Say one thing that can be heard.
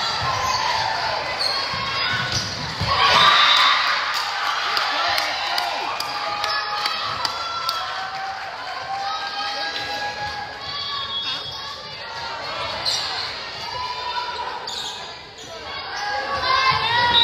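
Young women call out and cheer in a large echoing gym.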